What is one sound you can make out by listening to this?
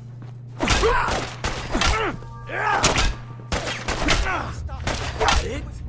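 Heavy blows strike with wet, thudding impacts.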